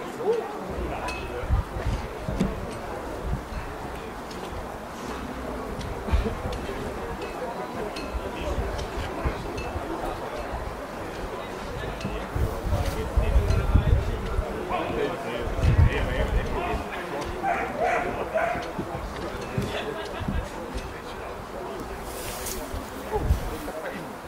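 A man calls out short commands outdoors.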